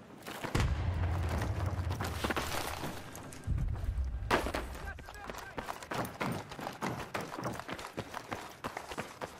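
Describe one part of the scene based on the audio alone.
Gunfire crackles and booms in rapid bursts.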